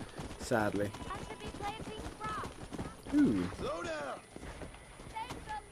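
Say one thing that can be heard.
A horse's hooves clop steadily on hard ground.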